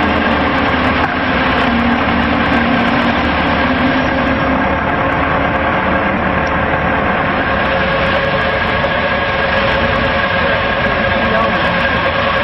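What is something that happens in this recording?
A concrete mixer drum turns and churns.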